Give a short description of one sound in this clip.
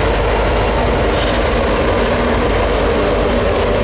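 A diesel locomotive engine drones loudly.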